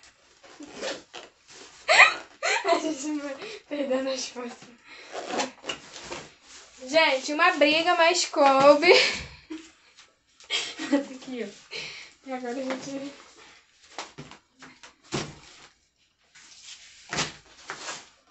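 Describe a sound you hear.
A bag rustles as it is handled.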